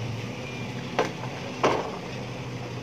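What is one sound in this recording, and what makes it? A plastic bowl knocks against the inside of a metal pot.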